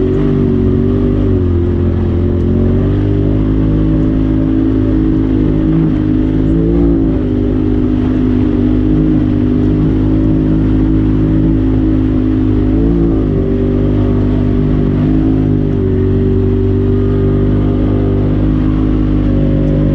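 An off-road vehicle's engine hums steadily, rising and falling slightly in pitch.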